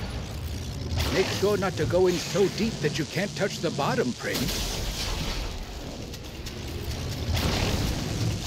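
A heavy gun fires with loud blasts.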